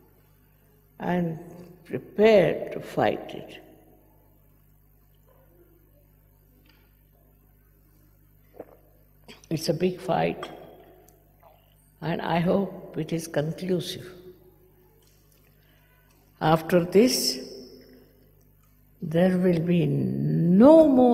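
An elderly woman speaks slowly and calmly through a microphone, with pauses.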